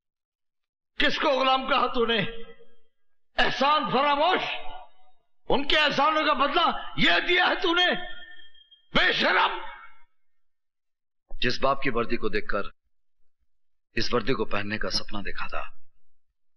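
An elderly man speaks loudly and with agitation, close by.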